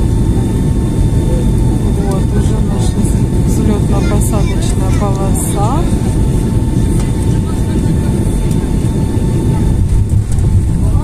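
A plane's wheels rumble over the runway.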